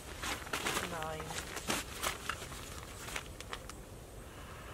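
A plastic tarp rustles and crinkles as it is shaken and handled.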